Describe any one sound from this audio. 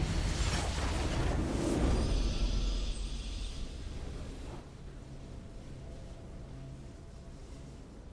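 A triumphant musical chime rings out and slowly fades.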